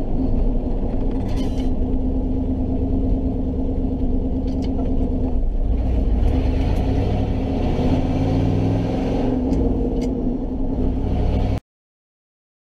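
A truck engine rumbles and revs loudly from inside the cab.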